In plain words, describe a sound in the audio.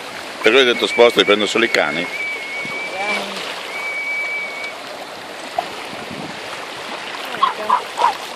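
Small dogs splash through shallow water.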